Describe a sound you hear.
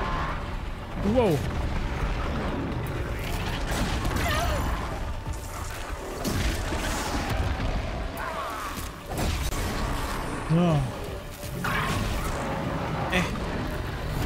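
A large machine creature roars and screeches.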